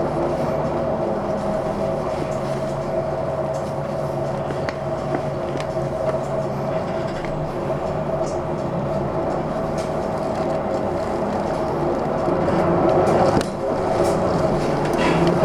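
A vehicle engine hums steadily from inside as it drives along a road.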